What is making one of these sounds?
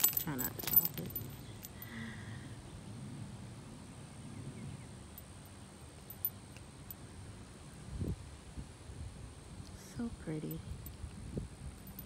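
Small metal charms on a keyring jingle softly.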